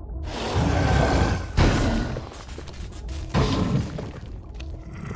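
Heavy rumbling crashes boom as a huge stone creature is struck.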